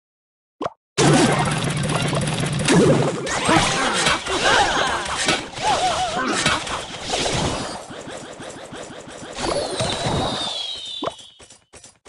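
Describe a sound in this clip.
Game battle sounds of clashing and small explosions play.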